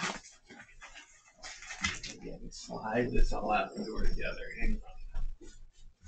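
A cardboard box scrapes and thumps as it is handled.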